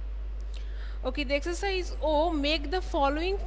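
A young woman speaks clearly into a microphone, heard through a loudspeaker.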